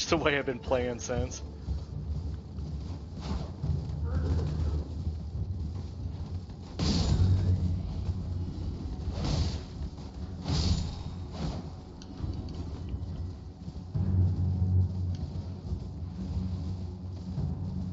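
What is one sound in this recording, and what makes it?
A horse's hooves thud steadily as it gallops over grass.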